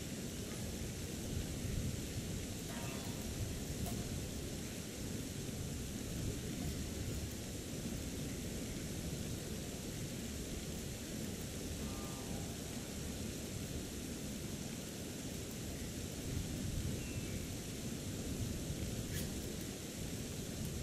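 Water rushes steadily nearby.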